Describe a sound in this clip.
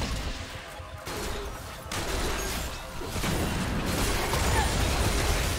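Fantasy battle sound effects crackle and burst as spells hit.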